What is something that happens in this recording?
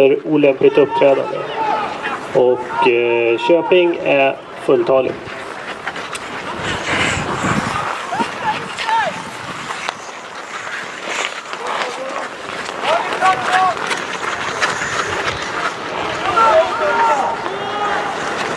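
Skates scrape and hiss on the ice.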